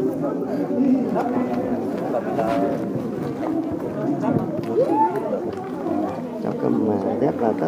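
Children chatter and call out nearby outdoors.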